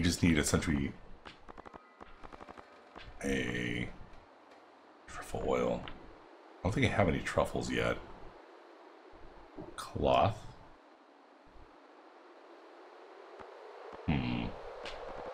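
A man speaks calmly into a microphone, close up, in short bursts.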